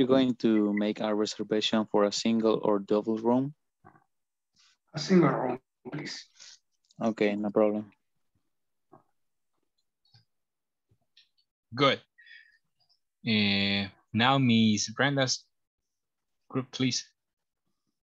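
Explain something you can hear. A man speaks with animation over an online call, in short bursts with pauses.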